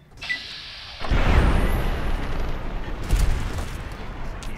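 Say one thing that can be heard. A heavy gun fires loud blasts that boom and echo.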